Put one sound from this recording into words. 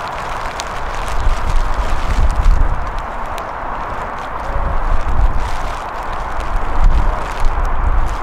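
Wind rumbles across an open field outdoors.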